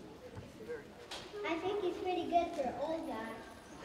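A young boy speaks into a microphone in a large hall.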